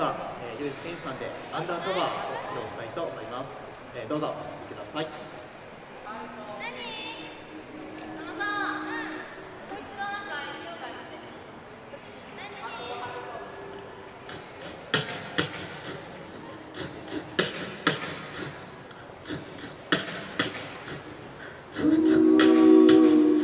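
A group of young men and women sing together without instruments through microphones.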